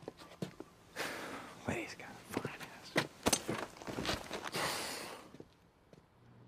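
A man speaks in a low, gruff voice close by.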